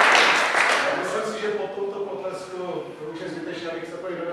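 A man speaks to an audience in a large hall.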